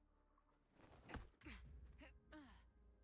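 A fist strikes a body with a heavy thud.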